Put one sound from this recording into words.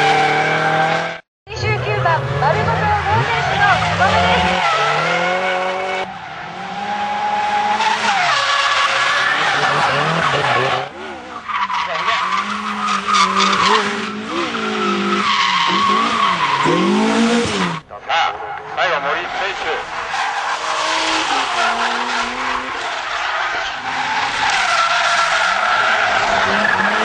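Car engines rev hard, rising and falling in pitch.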